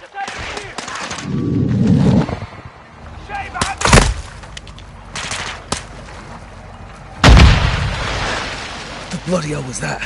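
Water sloshes and splashes as a swimmer moves through it.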